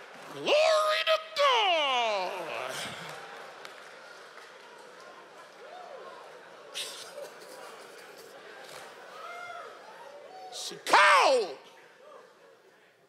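A large audience laughs and cheers.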